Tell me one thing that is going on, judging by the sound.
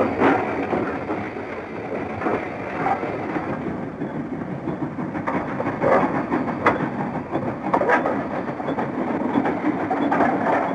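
A steam train chugs past, puffing steadily.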